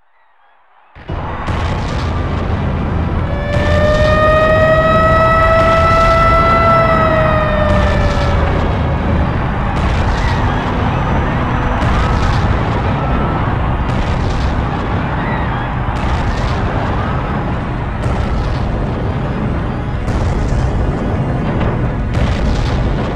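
A deep rumble of crashing debris runs on steadily.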